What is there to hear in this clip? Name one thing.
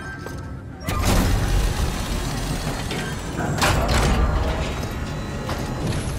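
Machinery whirs and clanks as a conveyor carries crates away.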